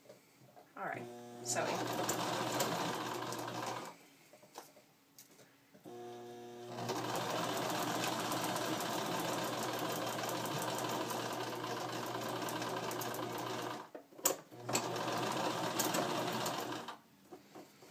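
A sewing machine runs in fast, steady bursts, stopping and starting.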